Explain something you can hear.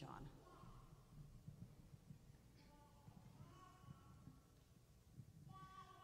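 An elderly woman speaks calmly through a microphone in an echoing hall.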